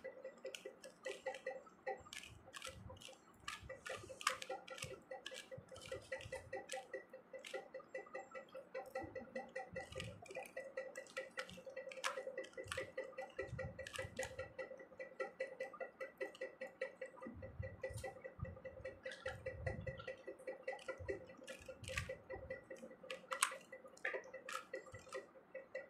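Plastic puzzle cube pieces click and clack quickly as they are turned.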